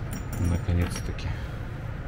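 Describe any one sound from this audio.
A man speaks briefly and casually nearby.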